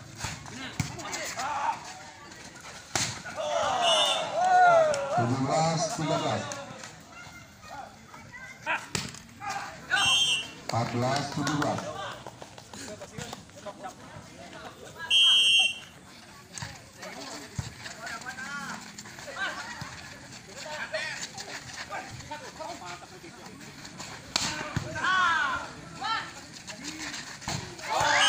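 Men shout and call out with excitement nearby, outdoors.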